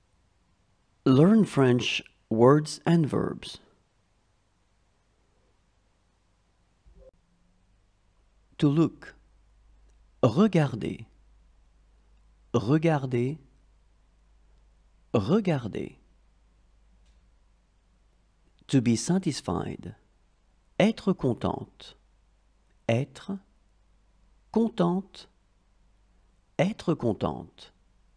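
A young woman reads out single words clearly, with short pauses between them.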